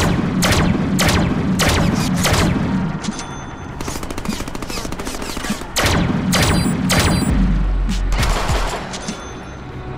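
Gunfire blasts rapidly in a video game.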